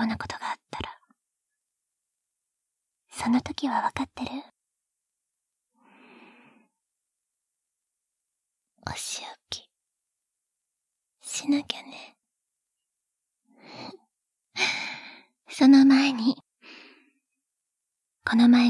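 A young woman speaks softly and close to the microphone, in short phrases with pauses.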